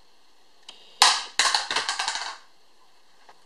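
A mobile phone clatters onto a hard floor.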